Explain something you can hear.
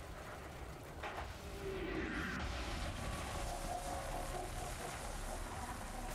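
A large explosion booms and crackles.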